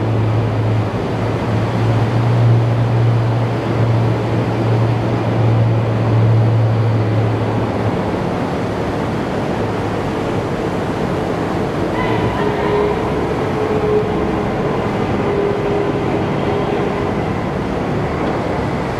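Seawater churns and splashes around a swimming amphibious vehicle.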